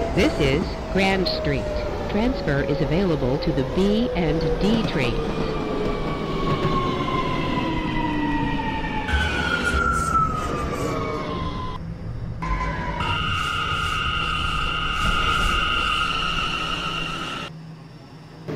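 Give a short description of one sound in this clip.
Train wheels rumble and clatter on the rails.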